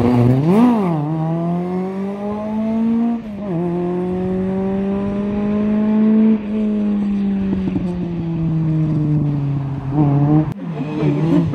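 A rally car engine drones away into the distance and fades.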